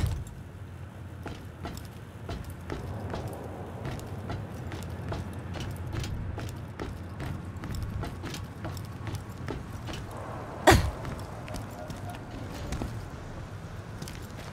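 Footsteps clank steadily on a metal walkway.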